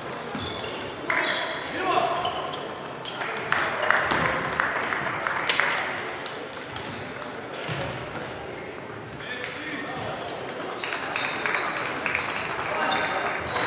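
Table tennis balls click on tables and paddles throughout a large echoing hall.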